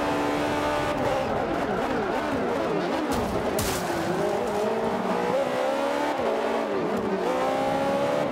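A racing car engine drops in pitch as the car brakes hard and shifts down.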